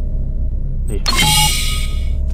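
A heavy sliding door hisses open.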